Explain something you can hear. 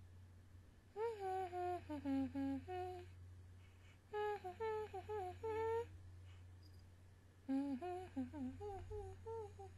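A young woman hums a melody softly, close to a microphone.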